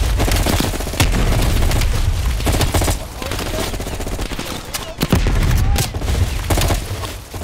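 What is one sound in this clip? A rifle fires close by in sharp bursts.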